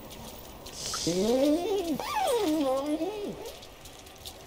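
A cat meows in a long, wavering cry.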